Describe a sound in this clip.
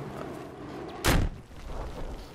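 A loud explosion booms close by.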